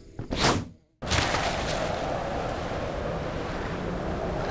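A steady rush of wind roars on.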